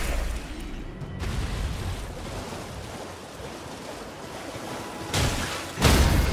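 Water splashes under galloping hooves in a shallow stream.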